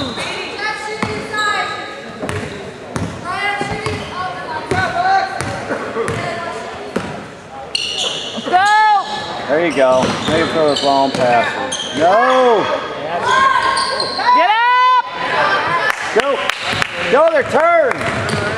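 A basketball thumps on a hard floor in a large echoing gym.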